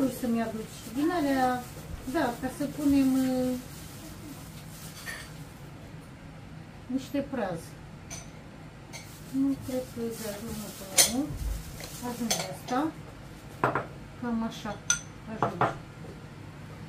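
A middle-aged woman speaks nearby.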